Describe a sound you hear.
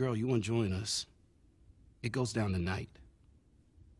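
A young man speaks with urgency, close by.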